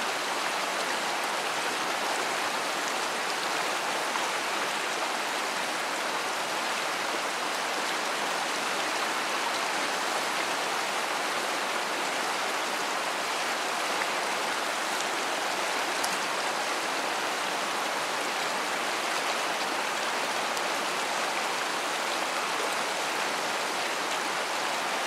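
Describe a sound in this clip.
A shallow river rushes steadily over stones.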